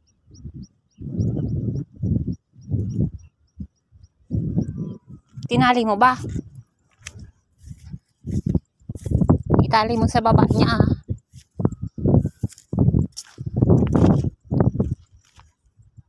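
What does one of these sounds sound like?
Footsteps crunch on grass and pebbles close by.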